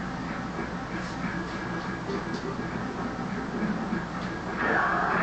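Bare feet thump and shuffle on a hard floor.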